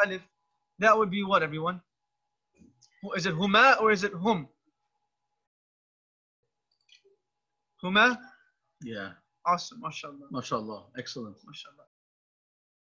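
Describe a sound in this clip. A man speaks calmly into a microphone over an online call.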